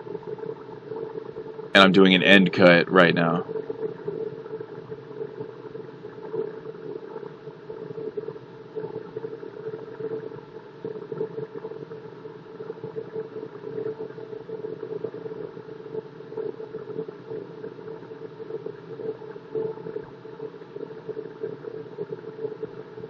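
A wood lathe motor hums steadily.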